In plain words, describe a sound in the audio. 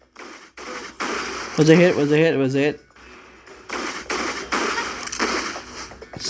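Blades slash and strike in quick, noisy bursts.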